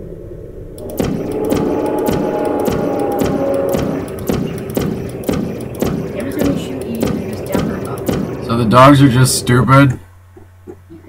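A glowing energy ball crackles and hums with a buzzing fizz.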